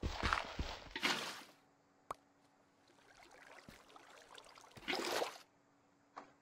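Water splashes as it is poured out of a bucket.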